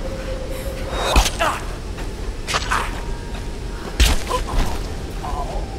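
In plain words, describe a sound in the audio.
Heavy blows of an axe strike a man.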